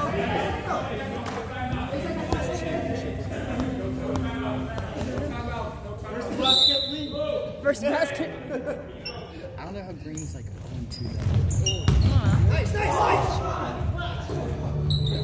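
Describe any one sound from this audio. Men talk and call out across a large echoing gym.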